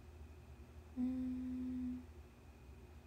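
A young woman hums a short steady note close to a microphone.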